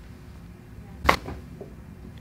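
A neck cracks with a sharp pop.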